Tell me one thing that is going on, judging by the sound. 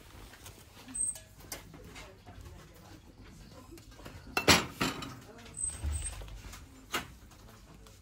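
A lidded box is lifted and handled with light knocks and taps.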